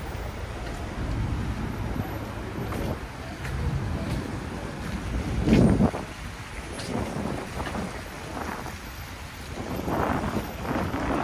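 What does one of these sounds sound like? City traffic rumbles steadily along a street nearby.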